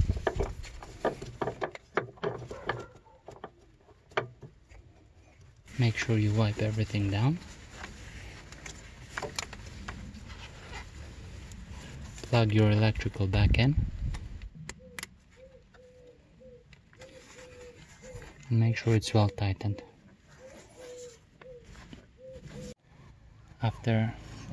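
Plastic engine parts click and rattle as hands work on them.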